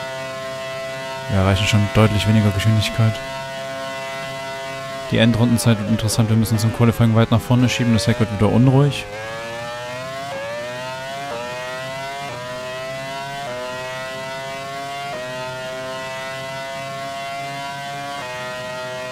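A racing car engine whines at high revs, climbing in pitch and dropping briefly with each gear change.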